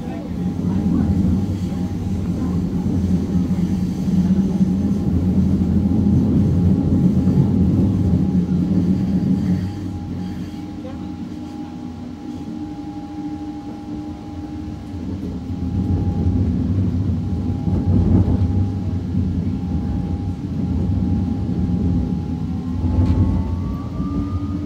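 A high steady whine from the train's motors rises in pitch near the end.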